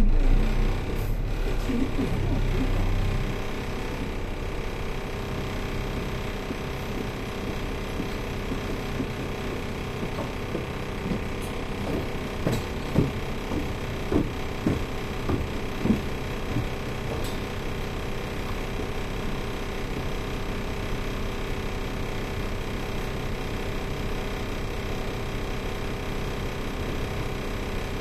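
A distant city hum drones steadily outdoors.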